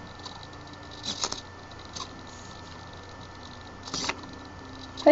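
Wooden parts clack and knock as a mechanism swings.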